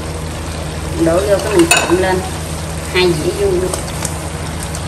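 Fried food tumbles from a plate into a pan with a soft rustle.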